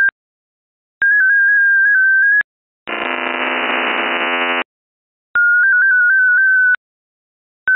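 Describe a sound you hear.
An electronic keyer beeps a steady high tone in bursts.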